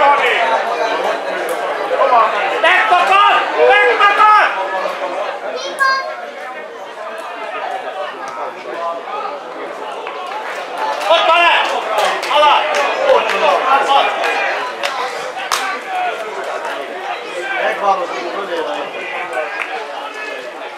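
A man shouts across an outdoor pitch.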